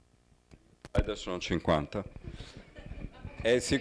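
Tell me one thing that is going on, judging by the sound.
A man speaks into a microphone in a room with a slight echo.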